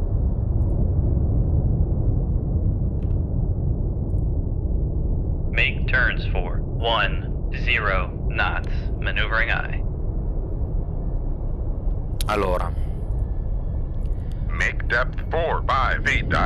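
A submarine hums with a deep, steady underwater rumble.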